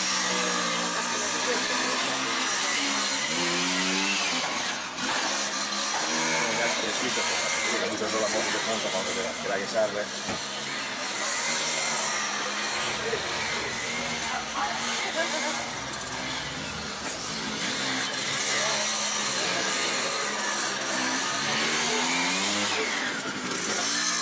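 A scooter engine revs and putters as it weaves at low speed.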